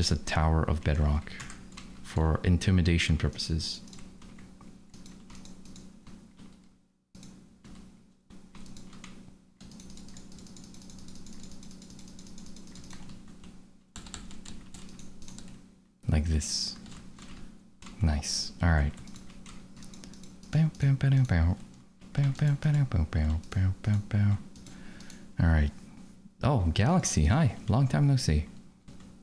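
Keyboard keys click.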